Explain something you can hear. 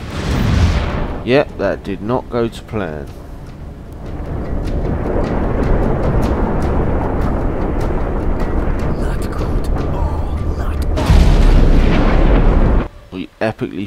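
Explosions boom and roar loudly.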